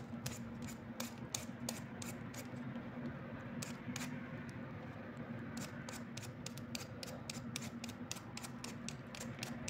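A peeler scrapes quickly over a potato in short strokes.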